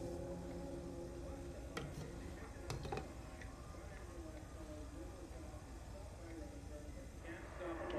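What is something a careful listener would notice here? A gas burner hisses softly.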